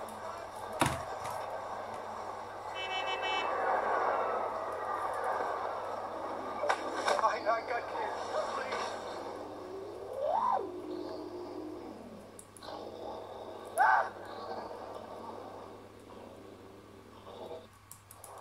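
Game sound effects whoosh and clatter through small speakers.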